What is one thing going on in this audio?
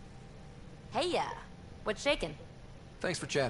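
A young woman speaks calmly and asks a question.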